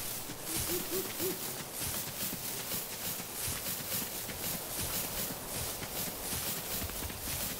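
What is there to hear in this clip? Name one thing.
Quick footsteps patter steadily over grass.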